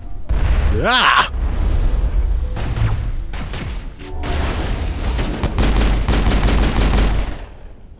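Rapid gunfire crackles with heavy booms.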